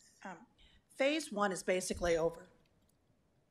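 A middle-aged woman talks with animation into a microphone.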